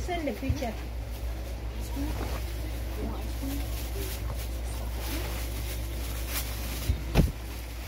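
Stiff fabric rustles as a heavy robe swings about.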